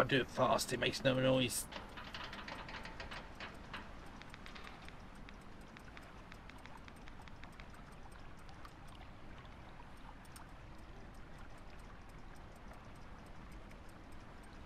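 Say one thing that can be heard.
A metal crank ratchets with rapid clicks as it turns.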